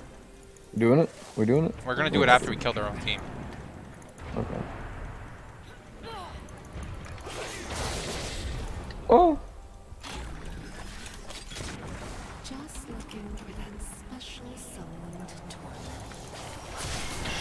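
Video game spell effects whoosh and zap.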